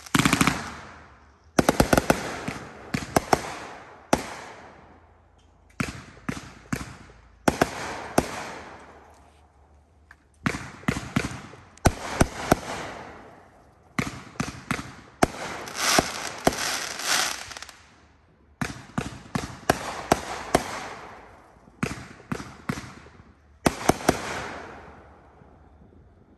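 Fireworks crackle and sizzle as they fade.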